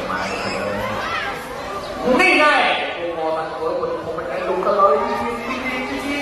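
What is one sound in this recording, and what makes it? A crowd of spectators chatters and exclaims nearby.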